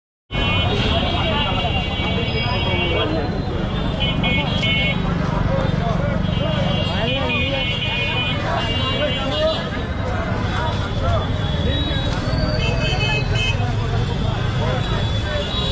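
A large crowd chatters loudly all around outdoors.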